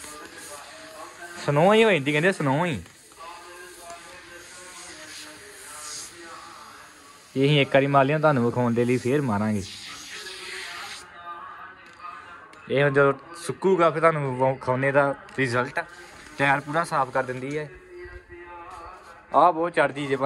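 An aerosol spray can hisses in short bursts.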